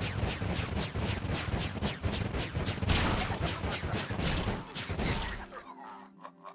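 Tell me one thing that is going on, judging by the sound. Magical blasts burst and crackle in quick succession.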